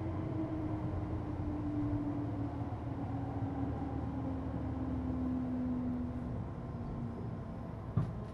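An electric train's motor whines and slowly falls in pitch.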